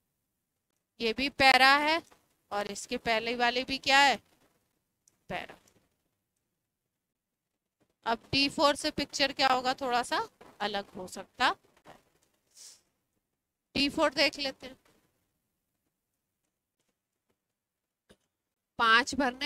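A woman speaks with animation, close to a microphone, in short bursts with pauses.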